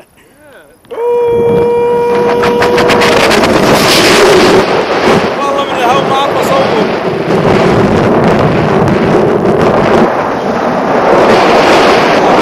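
Wind rushes hard across the microphone during a paraglider flight.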